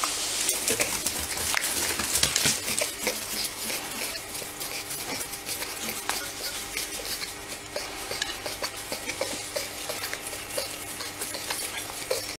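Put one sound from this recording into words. A hand rubs and scratches an animal's fur.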